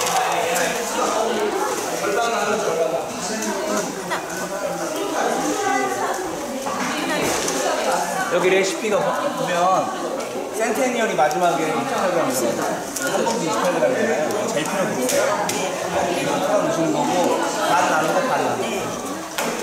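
Several adult women and men talk at once close by.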